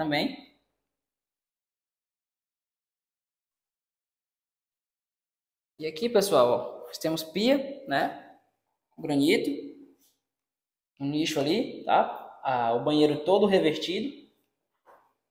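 A man speaks calmly close by, explaining.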